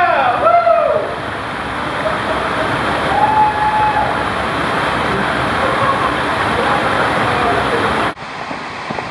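Water rushes steadily.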